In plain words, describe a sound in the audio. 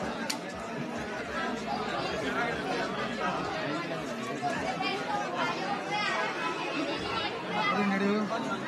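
Men and women chatter and laugh nearby.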